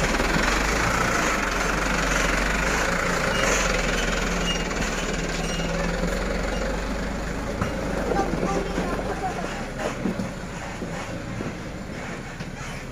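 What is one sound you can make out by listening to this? A truck's diesel engine rumbles steadily close by.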